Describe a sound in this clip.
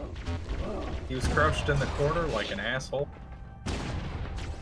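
A plasma gun fires rapid bursts of shots.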